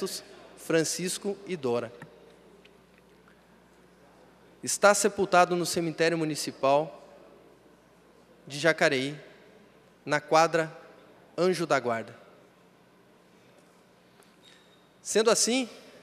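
A young man speaks formally into a microphone, pausing between phrases.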